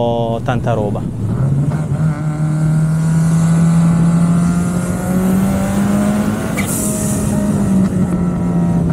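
A car engine roars steadily as the car speeds along a road.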